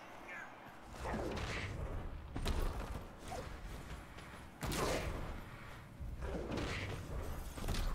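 Heavy bodies thud together in a rough tackle.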